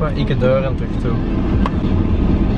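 A young man talks close by in a car.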